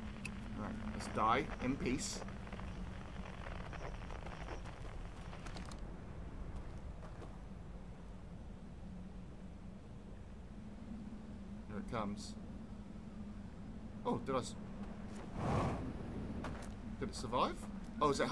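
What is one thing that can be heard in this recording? A man talks calmly into a close microphone, now and then.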